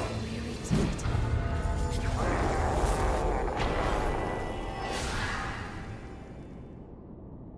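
Magic blasts burst with a loud rumble.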